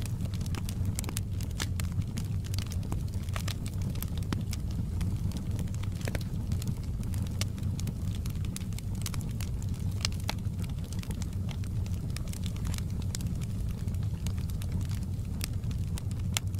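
Burning logs crackle and pop sharply.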